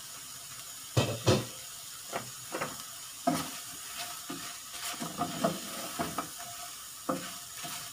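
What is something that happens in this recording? Wooden chopsticks stir shrimp and clack against a metal pan.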